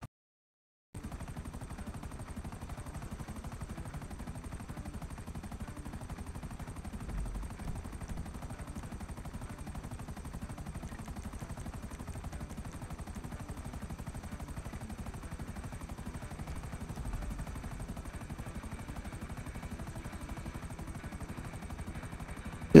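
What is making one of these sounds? A helicopter's rotor chops steadily and rapidly.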